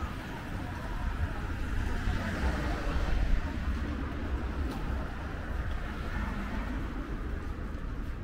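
A car drives past on a wet road.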